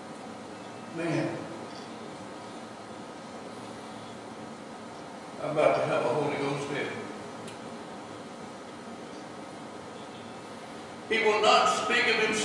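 A man speaks calmly into a microphone in a large echoing hall, with long pauses.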